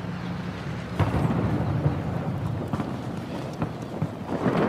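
Gunshots crack in short bursts nearby.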